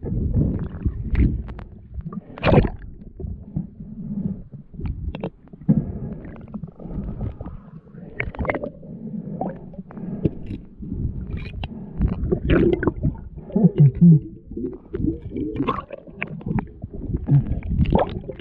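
Water rumbles and sloshes, heard muffled from underwater.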